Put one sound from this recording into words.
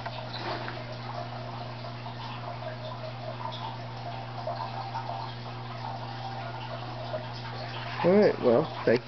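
An electric light hums steadily.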